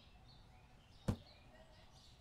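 A cardboard box drops onto a floor with a dull thud.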